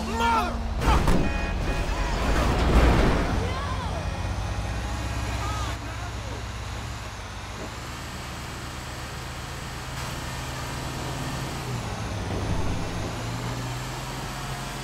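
A diesel fire truck engine rumbles as the truck drives.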